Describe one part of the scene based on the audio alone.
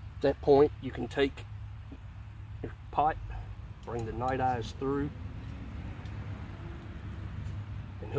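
A metal can clinks as it is hung on a hook.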